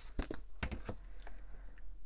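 Paper rustles as a page is handled.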